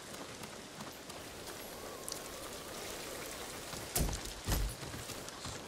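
Steady rain falls and patters all around.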